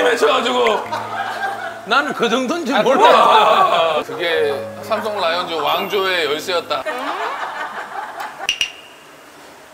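Several men talk and laugh loudly together, close by.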